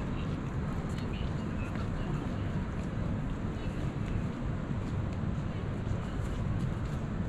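Footsteps walk on paved ground outdoors.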